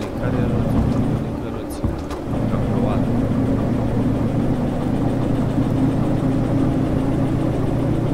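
A locomotive engine drones with a steady low rumble.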